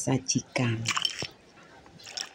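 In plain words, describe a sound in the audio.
A spoon clinks against ice in a bowl.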